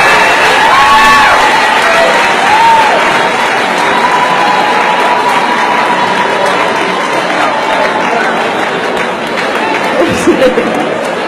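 A large crowd cheers in a big echoing hall.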